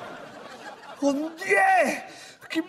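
A young man cries out in a sleepy, groaning voice.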